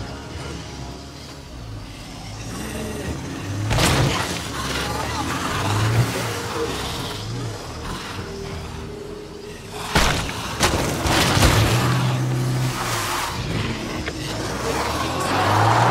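A car engine rumbles and revs as it drives over rough ground.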